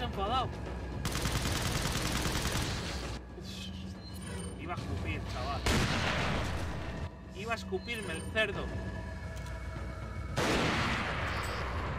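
Gunshots bang loudly.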